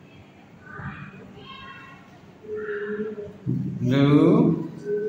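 A young boy speaks nearby in a clear voice.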